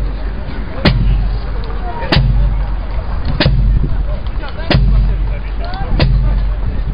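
A bass drum booms in a slow, steady marching beat outdoors.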